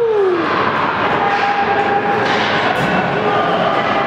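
Spectators chatter beside the rink.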